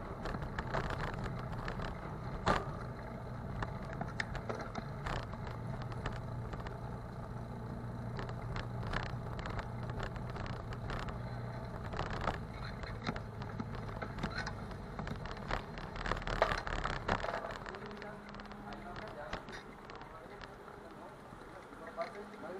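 Tyres rattle over a bumpy street surface.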